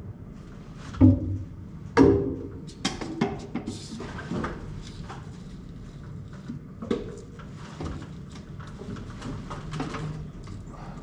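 A man knocks and scrapes at crumbling plaster overhead.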